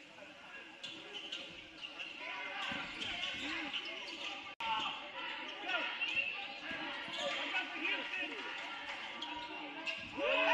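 A crowd cheers and chatters in an echoing gym.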